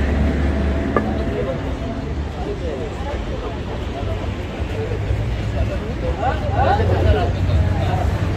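Low traffic rumble and street noise fill the air outdoors.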